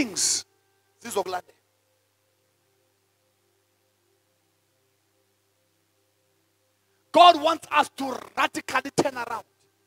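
A man speaks with animation into a microphone, with long pauses.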